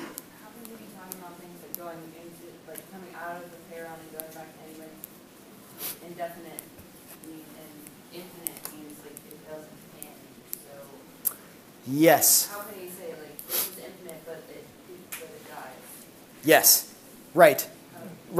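A man speaks calmly in a room with a slight echo, heard from a short distance.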